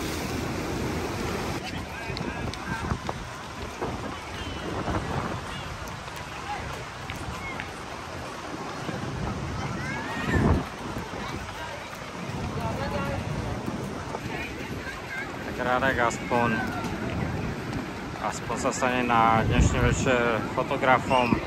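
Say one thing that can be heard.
Voices of a crowd chatter outdoors.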